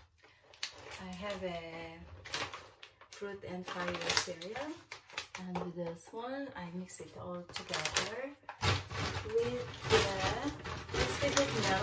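A cardboard box and a plastic packet rustle.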